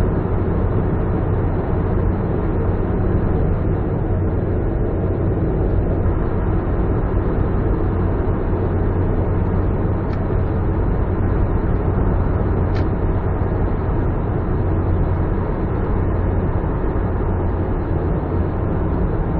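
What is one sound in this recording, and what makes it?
A car engine hums low and steady, echoing in a tunnel.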